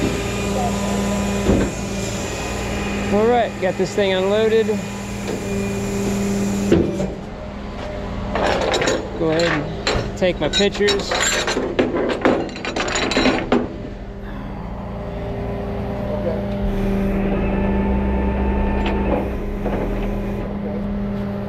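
A truck engine idles with a steady low hum.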